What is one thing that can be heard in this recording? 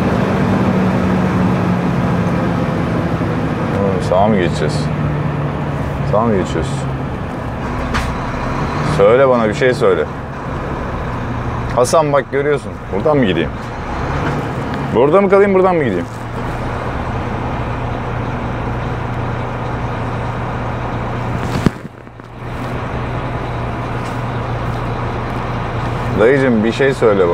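A truck engine hums steadily as the truck drives slowly.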